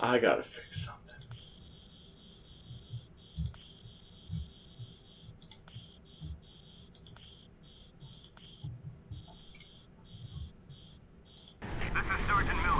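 Soft clicks tick as menu options are selected.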